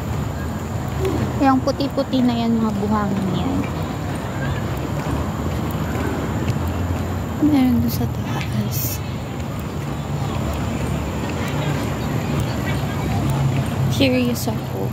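A woman speaks close by in short, calm bursts.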